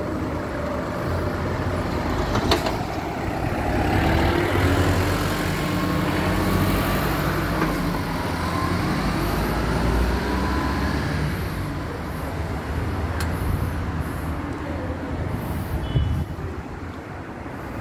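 A steady hum of city traffic fills the air.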